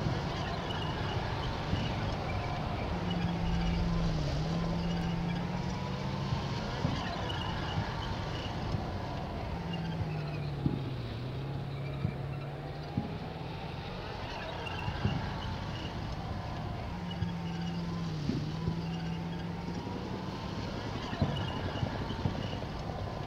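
Tank engines rumble and clatter as armoured vehicles drive over dirt.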